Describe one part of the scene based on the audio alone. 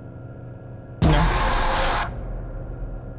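A burst of electronic static hisses.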